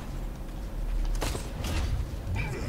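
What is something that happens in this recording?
Heavy guns fire in a video game.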